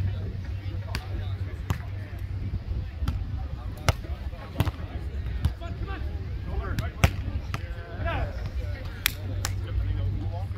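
Hands strike a volleyball with sharp, loud slaps.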